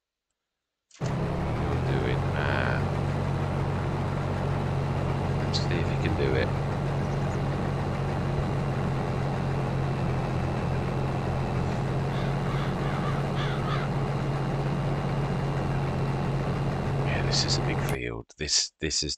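A combine harvester's engine drones steadily.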